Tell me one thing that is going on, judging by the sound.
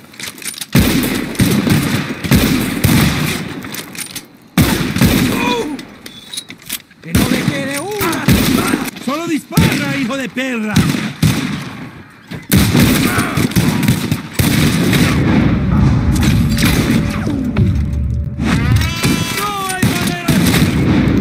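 Gunshots fire repeatedly and loudly.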